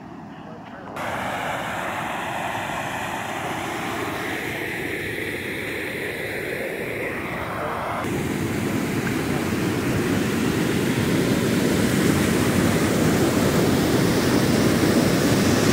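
Rushing water roars loudly, growing closer.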